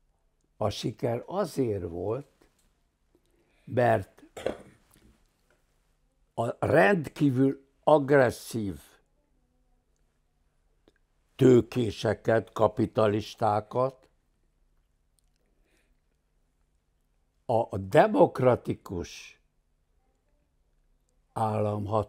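An elderly man speaks with animation close to a microphone, pausing often.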